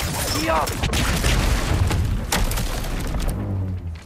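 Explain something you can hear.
A heavy metal cage crashes down onto rock.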